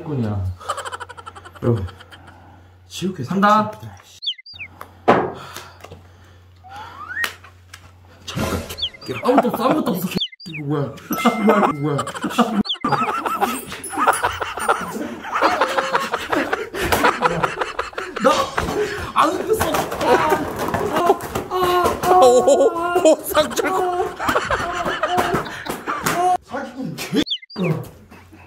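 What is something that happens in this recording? Two young men talk and laugh loudly nearby.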